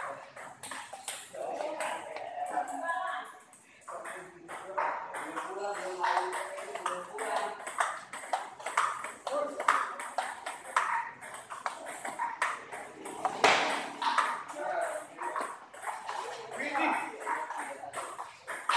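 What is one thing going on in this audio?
Men talk and call out in an echoing hall.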